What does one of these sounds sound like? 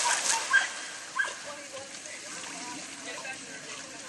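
Water sloshes as a dog swims.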